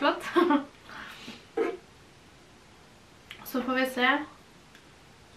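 A young woman talks calmly and cheerfully close by.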